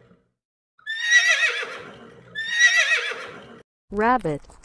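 A horse whinnies loudly twice.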